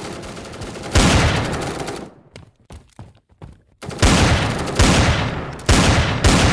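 A pistol fires loud shots in quick succession.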